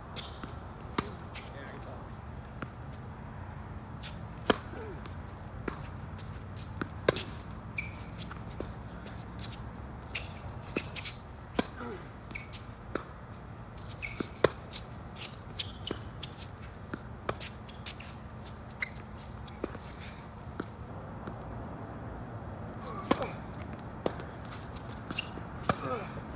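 Shoes scuff and squeak on a hard court.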